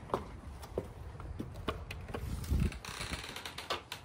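A door latch clicks as a door is opened.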